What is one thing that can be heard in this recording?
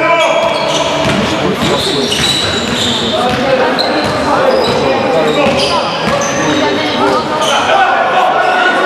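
Sneakers squeak sharply on a hard court, echoing in a large hall.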